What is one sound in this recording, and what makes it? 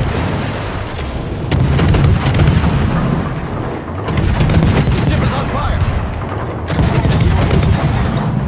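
Anti-aircraft guns rattle and pop continuously.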